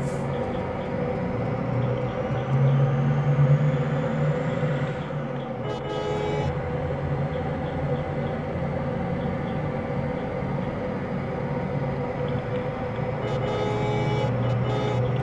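A bus engine drones steadily as the bus drives along a road.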